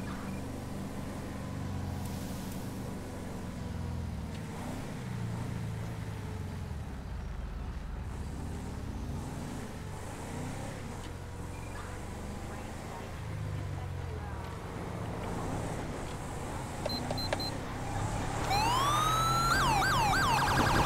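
A car engine hums and revs as the vehicle drives along.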